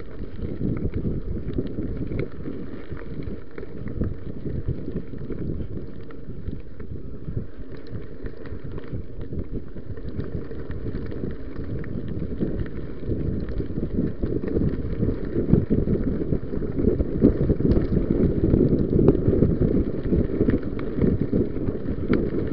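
A bicycle frame rattles over bumps.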